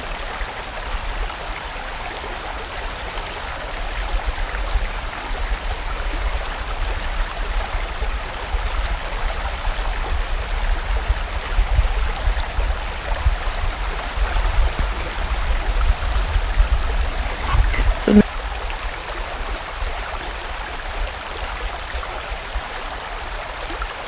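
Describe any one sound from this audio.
A stream rushes and babbles steadily over stones.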